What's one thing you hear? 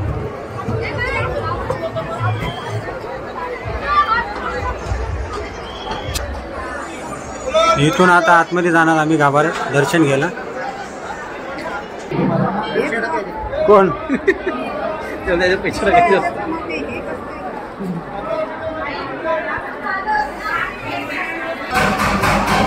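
A crowd of men and women talk and murmur close by.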